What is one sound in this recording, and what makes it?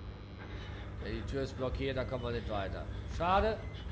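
A young man speaks close into a microphone.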